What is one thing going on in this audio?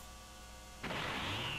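A powerful aura bursts with a rushing roar.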